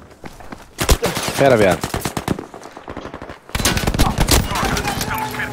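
Rapid gunfire cracks in quick bursts.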